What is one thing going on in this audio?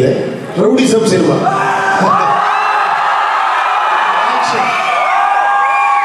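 A man sings into a microphone, heard through loudspeakers in a large hall.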